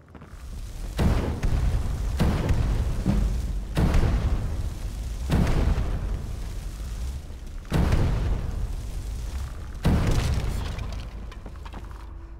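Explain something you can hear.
Fire spells roar and whoosh in repeated bursts.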